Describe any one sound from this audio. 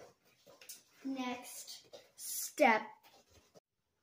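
A young girl speaks up close.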